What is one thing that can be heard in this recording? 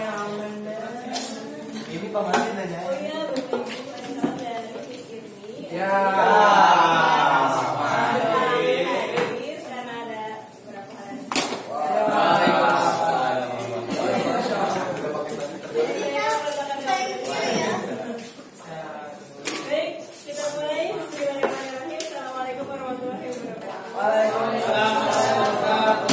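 Several adults chatter and answer nearby.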